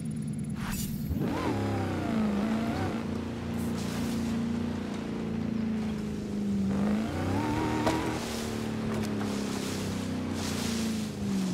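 An off-road engine revs hard and rises and falls in pitch as the vehicle speeds up.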